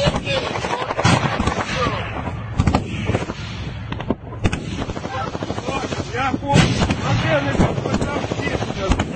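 Explosions bang sharply outdoors.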